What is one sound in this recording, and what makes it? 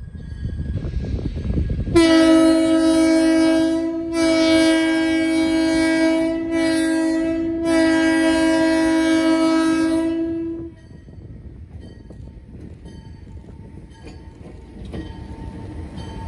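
A diesel locomotive engine rumbles as it approaches.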